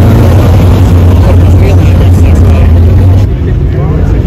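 A sports car engine rumbles loudly as the car drives off.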